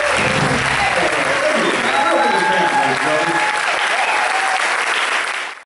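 Electric guitars play a rock tune.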